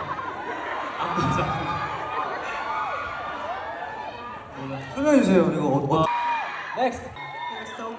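A young man speaks into a microphone over loudspeakers in a large hall.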